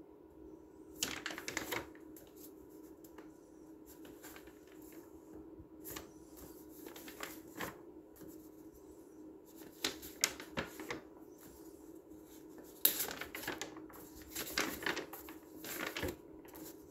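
Paper pages rustle and flip as a book's pages are turned.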